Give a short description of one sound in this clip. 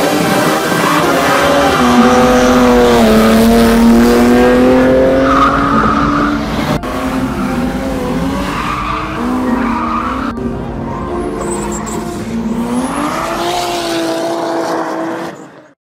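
A car engine revs loudly and changes pitch as the car drifts around a bend.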